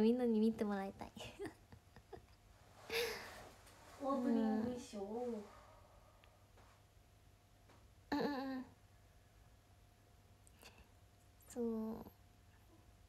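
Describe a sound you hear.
A young woman speaks in short, lively bursts, close to a microphone.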